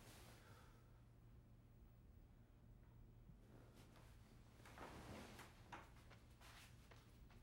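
Footsteps pad softly across a floor.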